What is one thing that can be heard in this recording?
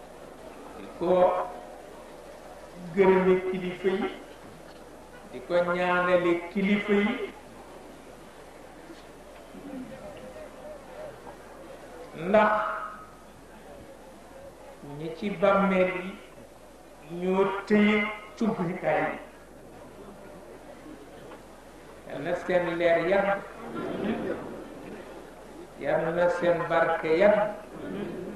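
An elderly man speaks slowly into microphones, in short phrases with long pauses.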